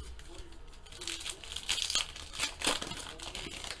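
A foil wrapper crinkles as it is torn open.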